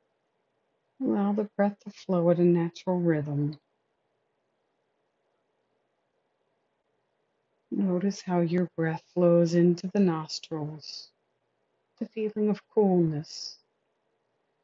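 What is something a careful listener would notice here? A woman reads aloud calmly, close by.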